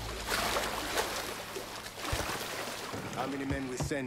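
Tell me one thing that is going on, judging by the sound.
A man climbs out of the water onto a wooden dock.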